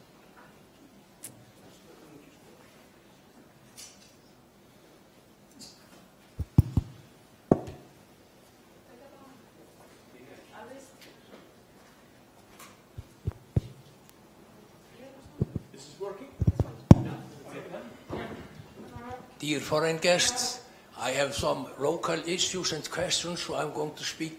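An older man speaks calmly through a microphone in a large room.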